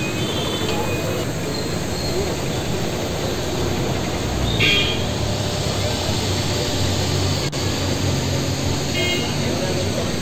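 Vehicle horns honk briefly now and then.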